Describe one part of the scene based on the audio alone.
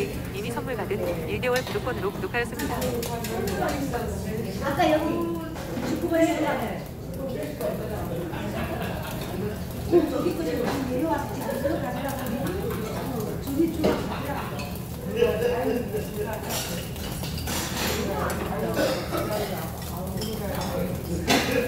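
Meat sizzles softly on a grill.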